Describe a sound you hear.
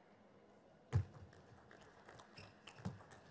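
A ping-pong ball clicks back and forth on paddles and a table.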